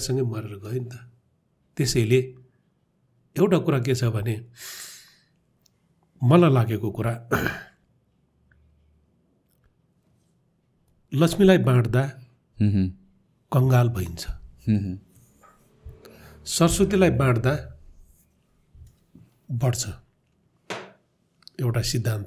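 An older man speaks calmly into a close microphone, with pauses.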